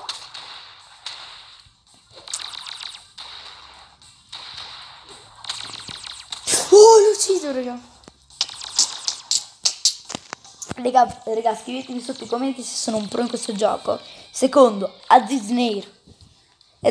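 Video game blasts and zaps pop rapidly.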